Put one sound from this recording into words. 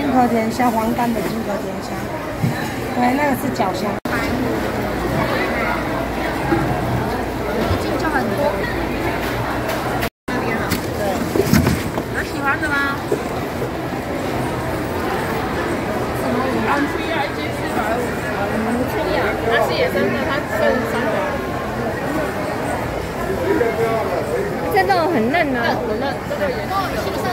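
A crowd of voices chatters all around.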